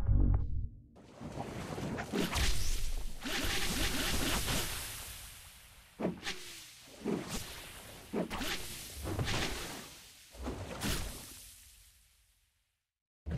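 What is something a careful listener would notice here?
Heavy blows thud and crash as monsters fight.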